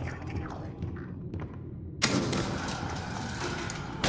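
A metal gate clanks shut.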